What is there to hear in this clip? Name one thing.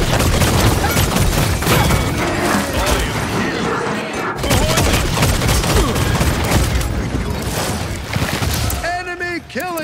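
Guns fire in rapid, loud bursts with booming impacts.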